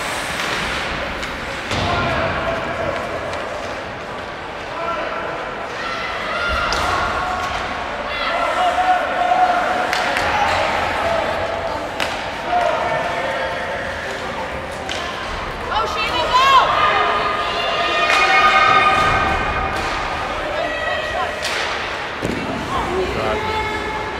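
Spectators call out and cheer in a large echoing rink.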